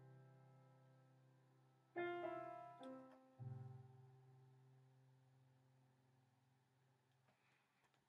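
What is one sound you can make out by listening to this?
An electronic keyboard plays a few sustained chords that ring out and slowly fade.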